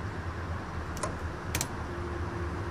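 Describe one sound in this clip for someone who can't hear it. Bus doors close with a hiss and a clunk.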